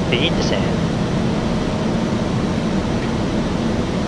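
An aircraft engine drones steadily with a low rushing of air.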